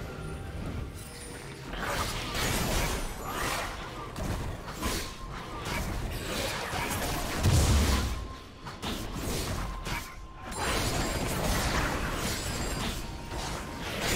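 Game spell effects whoosh and crackle in bursts during a fight.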